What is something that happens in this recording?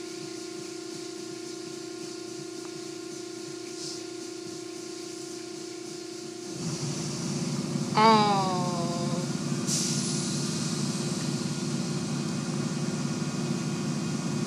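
Water sprays hard against a car.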